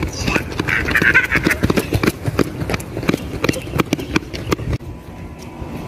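Children's footsteps patter quickly on a running track.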